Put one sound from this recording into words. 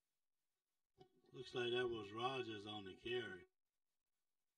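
A man announces calmly over a loudspeaker.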